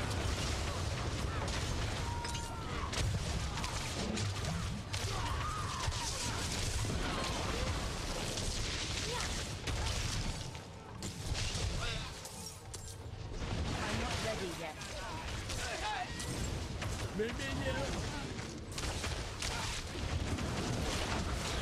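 Spell blasts, crackles and impacts from a video game ring out rapidly.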